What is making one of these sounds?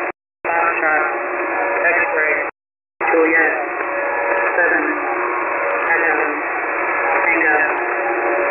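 A shortwave radio hisses and crackles with static.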